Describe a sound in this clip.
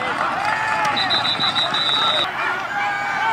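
A referee's whistle blows in several short bursts.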